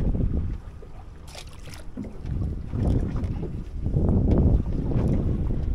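Wind buffets outdoors over open water.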